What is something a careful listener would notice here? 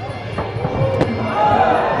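A kick lands on a body with a sharp thud.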